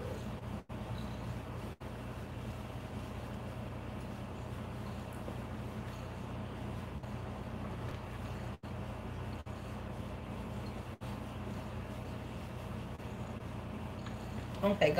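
A woman talks softly and calmly close by.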